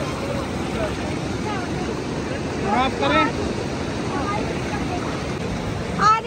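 A river rushes over rocks nearby.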